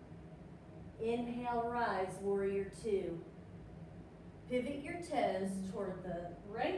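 A woman speaks calmly in an echoing room.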